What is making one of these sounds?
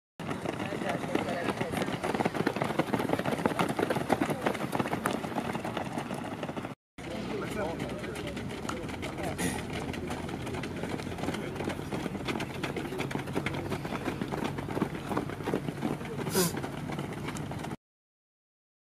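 Many runners' feet patter steadily on a dirt track.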